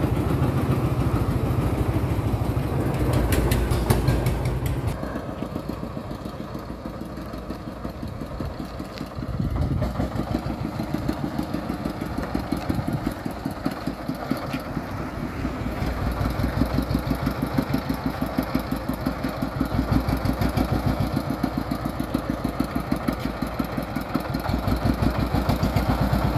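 A small diesel engine chugs with a fast, rough knock.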